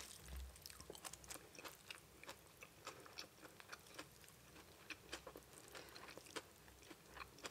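A young woman chews food wetly and loudly, close to a microphone.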